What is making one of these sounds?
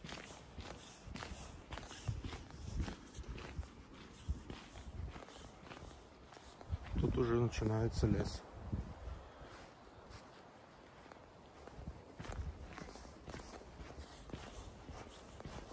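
Footsteps crunch on gravel and dry leaves at a walking pace.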